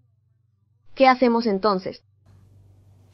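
Another young woman speaks quietly and close by.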